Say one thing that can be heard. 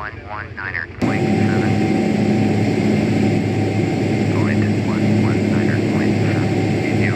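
A steady engine hum drones inside an airliner's cockpit.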